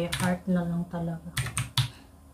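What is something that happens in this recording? A young woman speaks calmly close to a microphone.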